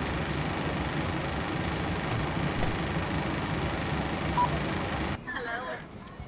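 Aircraft engines hum steadily, then cut off abruptly.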